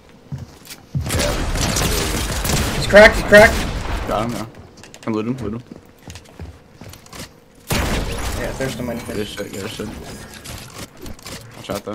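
Gunshots ring out in quick bursts.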